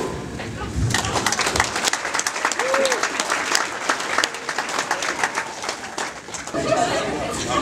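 A crowd laughs and cheers loudly.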